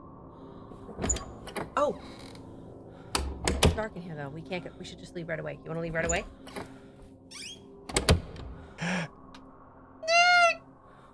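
A young woman talks and gasps into a close microphone.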